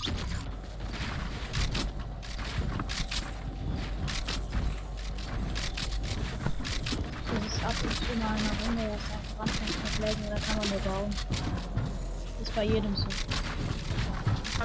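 Game building pieces snap into place with quick clicks and thuds.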